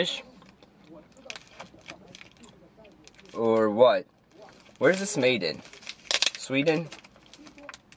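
A plastic wrapper crinkles in a man's hands.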